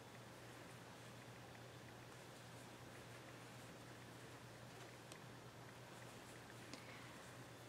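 A crochet hook clicks softly against yarn.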